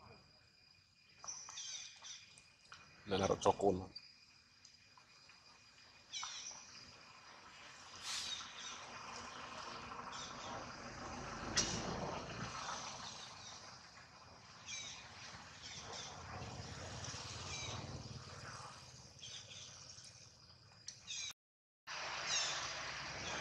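A baby long-tailed macaque squeals.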